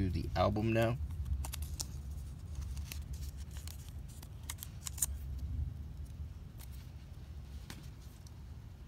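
Paper rustles and crinkles softly between fingers.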